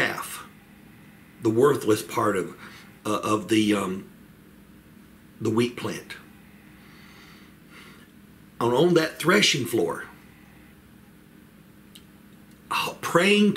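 An older man talks calmly in short bursts, close to a microphone.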